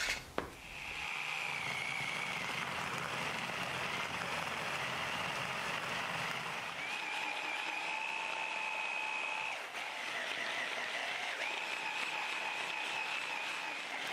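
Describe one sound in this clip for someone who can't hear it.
An electric food chopper whirs steadily with a high motor whine.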